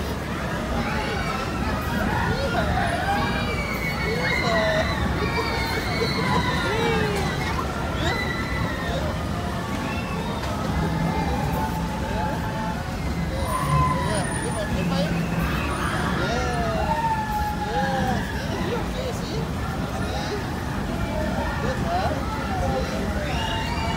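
A ride's machinery rumbles steadily as it rises and drops.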